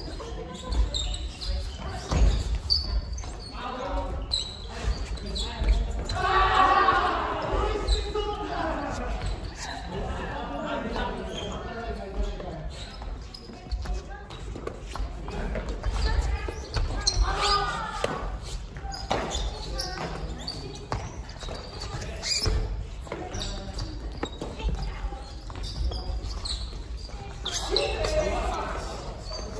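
Shoes squeak and thump on a wooden floor.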